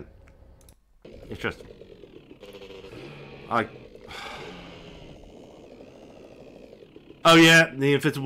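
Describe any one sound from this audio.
A motorbike engine hums.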